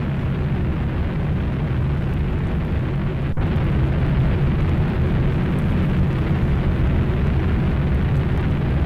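A huge spacecraft's engines roar with a deep, steady rumble.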